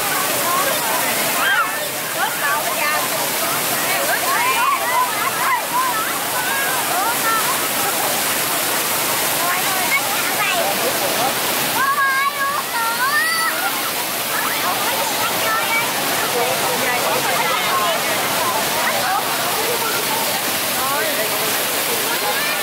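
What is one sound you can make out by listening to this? A crowd of children and adults chatter and shout nearby.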